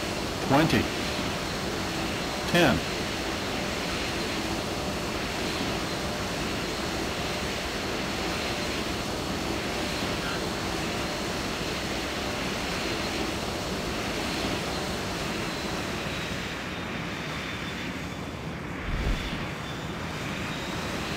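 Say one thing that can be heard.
The jet engines of an airliner hum steadily as it taxis.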